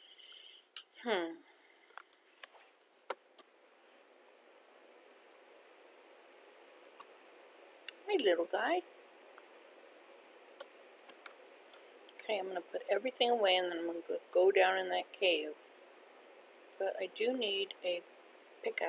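An elderly woman speaks calmly, close to a microphone.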